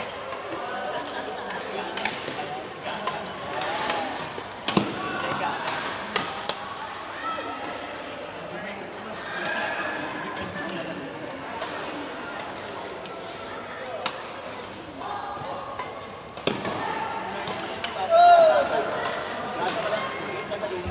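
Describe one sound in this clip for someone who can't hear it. Voices call out across a large echoing hall.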